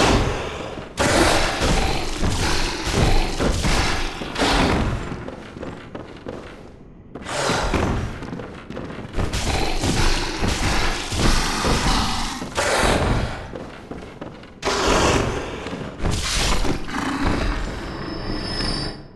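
Heavy blows and slashes strike flesh.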